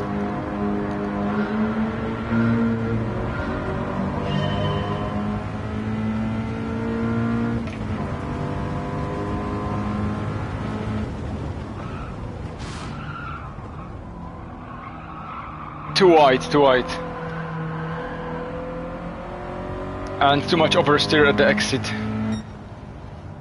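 A car engine revs hard and climbs through the gears.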